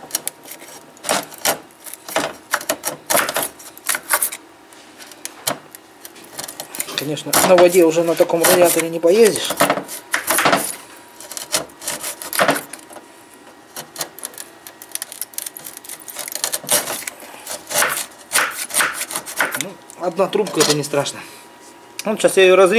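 A metal tool scrapes and clicks against thin metal fins.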